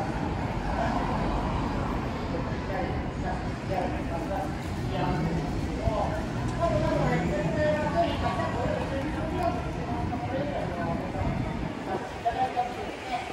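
Voices of a crowd murmur on a busy street outdoors.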